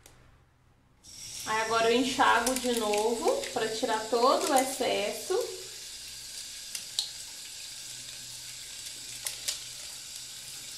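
Tap water runs steadily into a sink.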